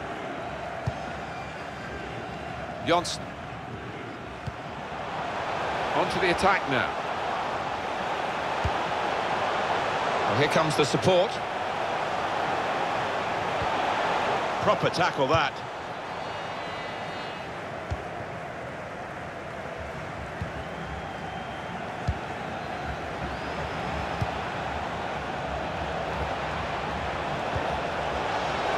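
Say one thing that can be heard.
A stadium crowd roars and chants steadily throughout.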